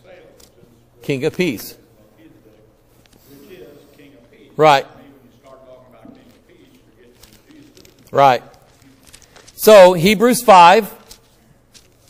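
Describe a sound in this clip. A middle-aged man speaks calmly through a microphone, in short bursts.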